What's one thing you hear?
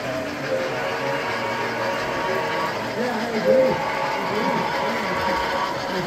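A model steam engine hisses and chuffs.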